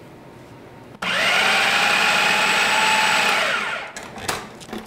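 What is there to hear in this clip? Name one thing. A food processor whirs loudly for a few seconds.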